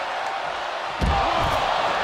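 A body slams hard onto the floor with a heavy thud.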